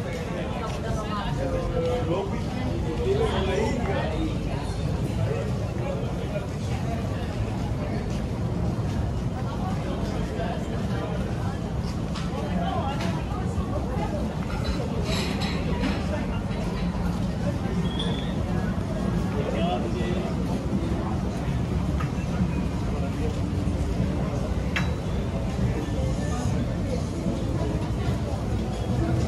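Voices of men and women chatting drift by outdoors.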